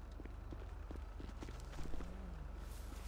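Footsteps run on a hard pavement.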